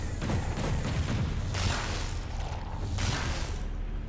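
Energy blasts whoosh and crackle as a fighter attacks.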